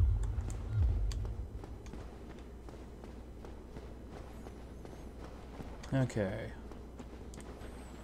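Armoured footsteps run on stone.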